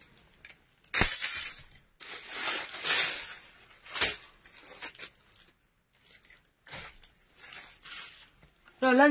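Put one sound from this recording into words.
Plastic bags and clothes rustle as they are handled.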